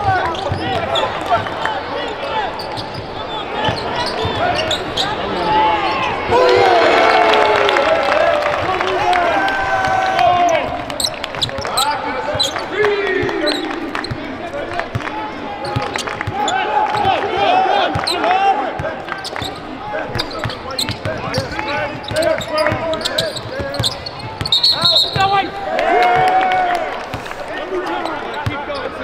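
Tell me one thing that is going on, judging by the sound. Young men shout and call out to each other in a large echoing arena.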